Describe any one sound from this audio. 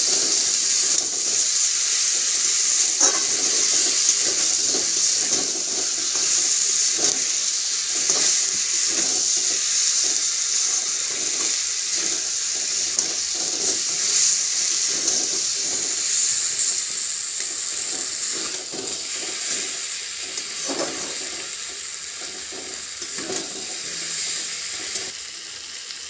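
A metal spatula scrapes and clinks against a metal pan.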